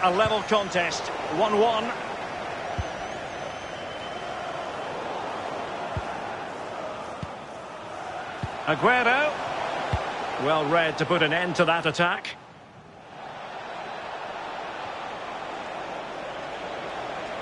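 A large crowd murmurs steadily in a big open stadium.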